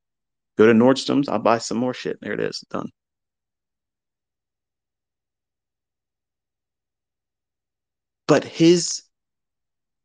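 A man speaks calmly and close up, through a microphone.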